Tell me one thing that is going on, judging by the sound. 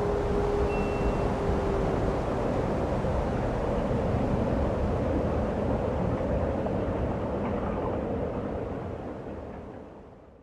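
Gentle water ripples lap softly.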